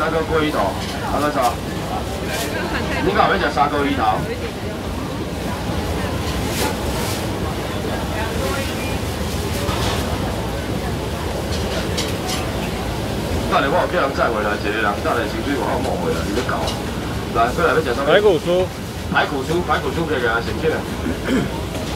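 A man shouts loudly close by, calling out to a crowd.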